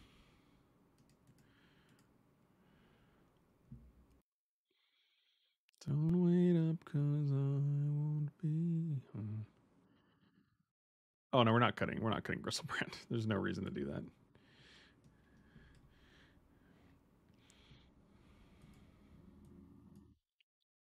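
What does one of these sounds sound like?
A middle-aged man talks with animation into a microphone.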